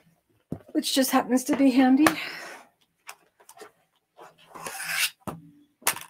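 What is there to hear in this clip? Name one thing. A large sheet of paper rustles as a woman handles it.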